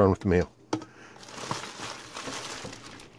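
Plastic mailers rustle and crinkle as they are handled.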